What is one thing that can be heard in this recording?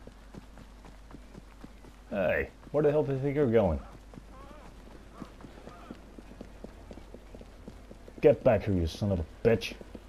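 Footsteps run quickly over paving stones.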